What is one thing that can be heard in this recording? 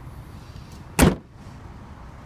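A car's tailgate thuds shut.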